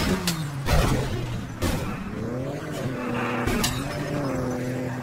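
A race car engine revs.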